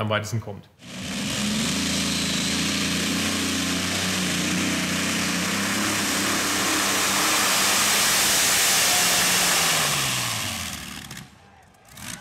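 A pulling tractor's engine roars loudly and steadily, then winds down.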